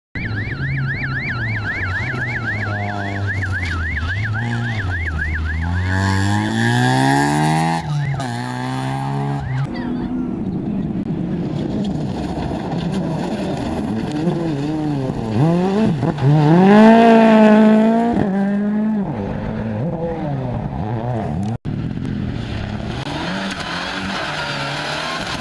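A rally car engine roars and revs hard as it speeds past.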